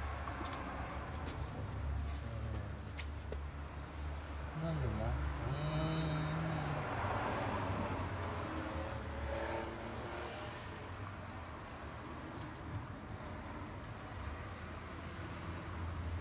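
A dog laps and chews food from a metal bowl.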